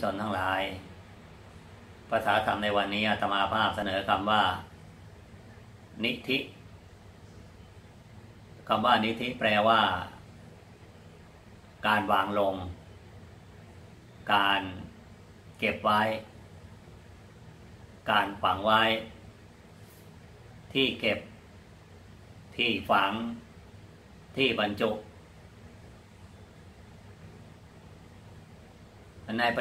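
An elderly man speaks calmly and slowly, close by, with pauses between phrases.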